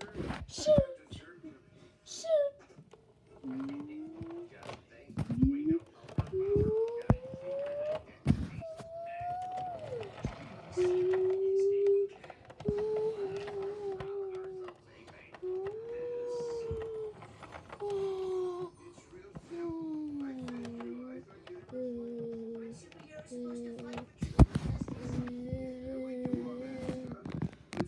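A toy bus rolls across a wooden floor.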